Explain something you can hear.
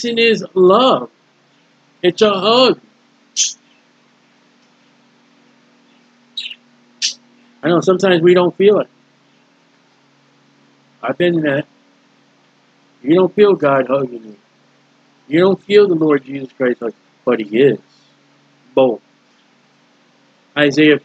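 A man speaks calmly in bursts with pauses, close to a microphone.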